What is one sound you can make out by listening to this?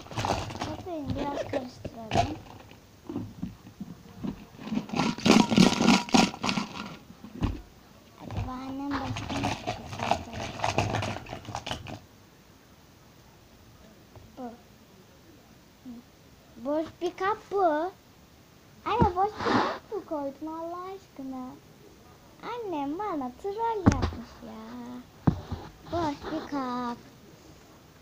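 A young girl talks close to a microphone with animation.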